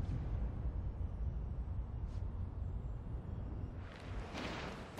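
Wind rushes loudly and low.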